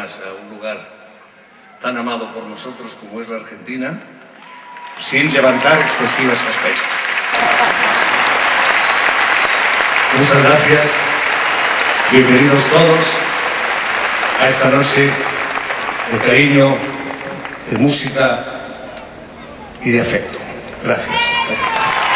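An elderly man speaks calmly through a microphone with a loudspeaker echo.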